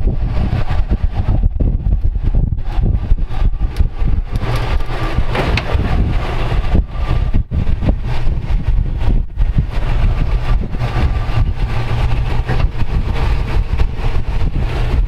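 Tyres crunch and grind over loose rock and gravel.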